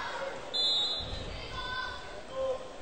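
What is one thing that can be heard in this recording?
A volleyball bounces on the floor.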